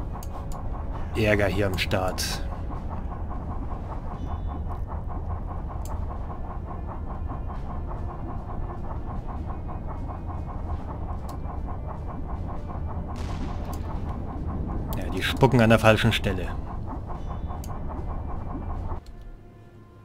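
A ship's engine drones low and steady.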